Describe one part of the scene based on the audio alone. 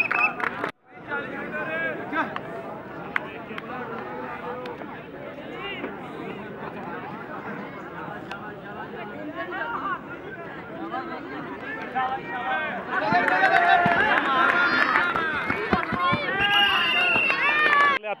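A crowd of men shouts and cheers outdoors, growing louder toward the end.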